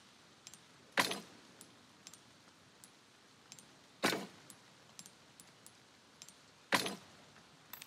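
A gem snaps into a metal socket with a bright clink.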